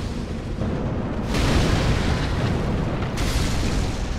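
A fireball bursts with a loud whoosh.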